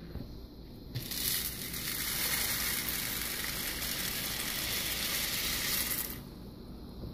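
Dry pasta rattles as it pours into a pot of water.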